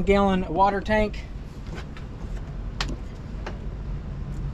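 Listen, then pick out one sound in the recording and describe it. A hatch lid knocks and clicks as it is lifted open.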